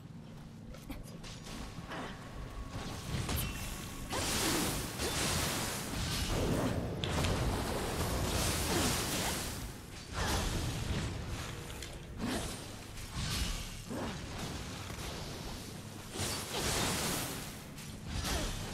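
Swords clash and slash in a fierce fight.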